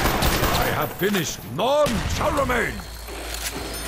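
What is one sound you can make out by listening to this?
Zombies groan and snarl close by.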